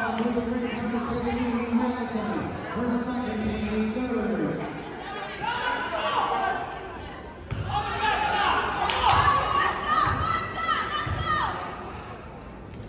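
A crowd of spectators murmurs and calls out.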